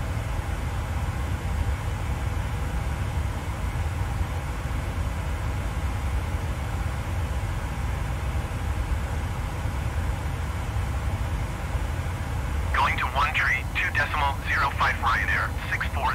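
Jet engines hum steadily and low at idle.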